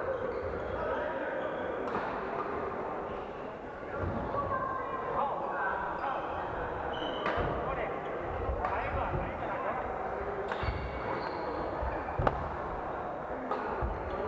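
Rackets strike shuttlecocks with sharp pops in a large echoing hall.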